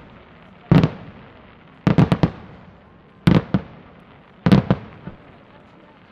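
Fireworks burst with loud booming bangs in quick bursts.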